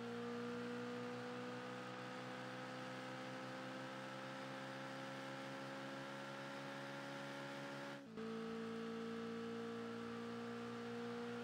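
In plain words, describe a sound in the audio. A racing car engine roars steadily, its pitch slowly climbing as it speeds up.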